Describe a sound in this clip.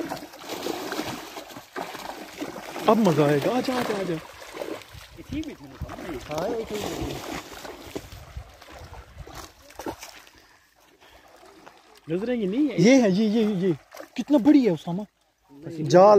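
Water splashes as a man wades through a pond.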